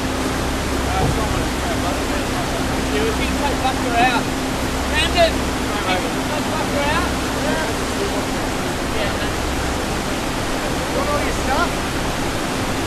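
A woman talks briefly nearby, outdoors.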